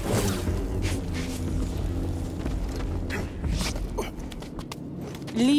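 A lightsaber hums with a low, steady buzz.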